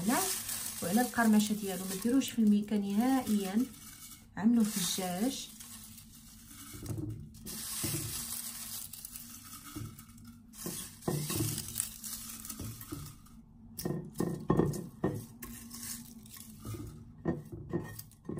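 Leafy greens rustle as they are pushed into a glass jar.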